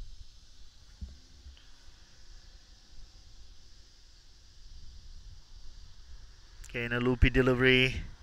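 A cricket bat strikes a ball with a sharp knock.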